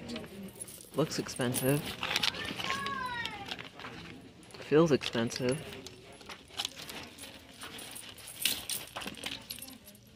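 A leather handbag rustles as it is handled.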